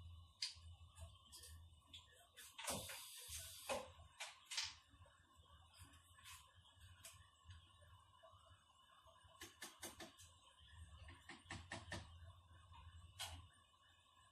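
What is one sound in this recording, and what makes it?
Small cups and utensils clink and knock on a table.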